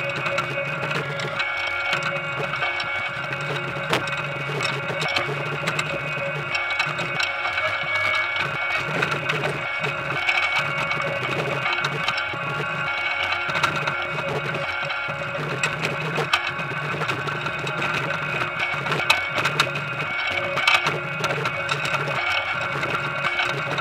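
Potatoes knock and tumble against each other.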